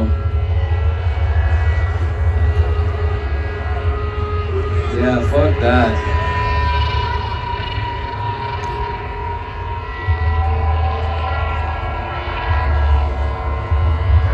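A large crowd cheers outdoors.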